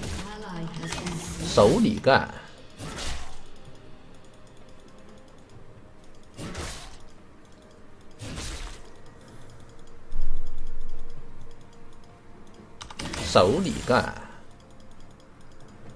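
Game spells and attacks burst and clash in quick bursts.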